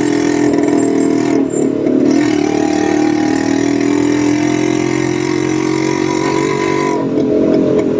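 A motorcycle engine hums loudly and steadily close by.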